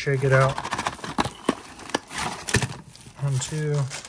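A plastic card wrapper crinkles as it is handled.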